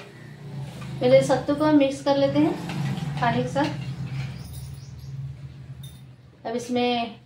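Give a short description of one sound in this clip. A woman speaks calmly close by.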